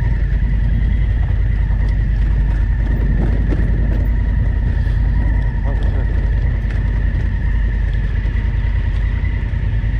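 Wind rumbles heavily against the rider's helmet.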